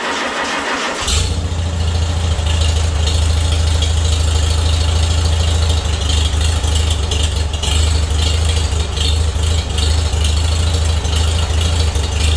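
An old tractor engine starts up and idles with a steady, low chugging rumble.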